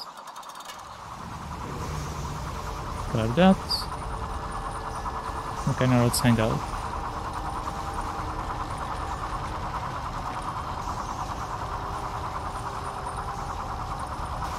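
A large spinning saw blade whirs steadily.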